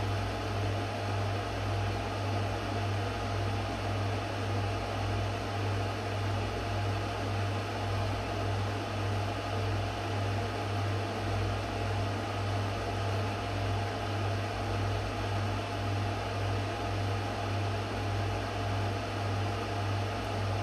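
A cooling fan whirs steadily inside a power inverter.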